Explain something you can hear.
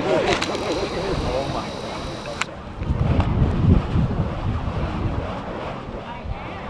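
A sparkler fizzes and crackles close by.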